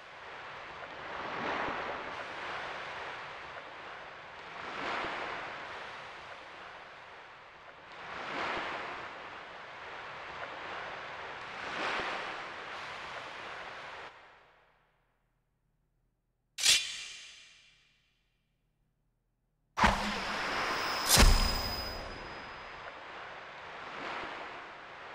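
Game music plays with swelling, echoing chords.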